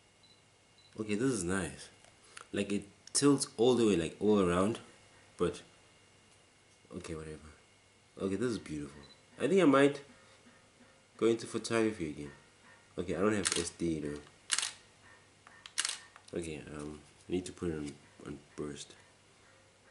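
A young man talks calmly close to the microphone.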